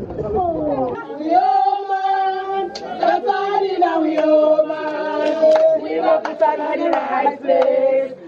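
A group of women sings a chant loudly together.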